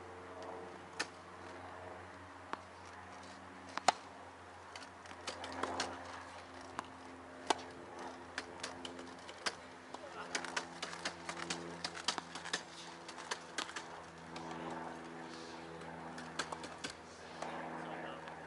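A tennis ball pops sharply off a racket now and then.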